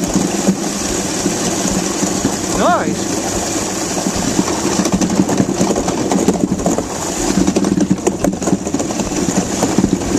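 Runners of an ice boat rumble and scrape steadily across ice.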